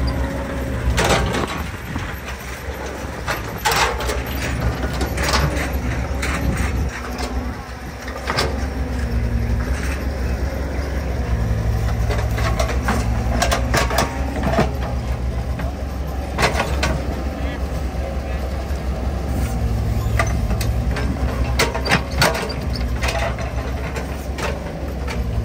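An excavator bucket scrapes and knocks against wet earth and metal.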